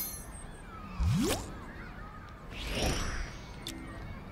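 A game whoosh sweeps up as the menu changes.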